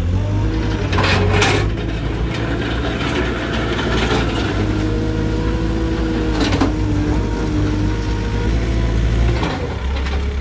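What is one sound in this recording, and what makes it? A hydraulic arm whines as the bucket lifts.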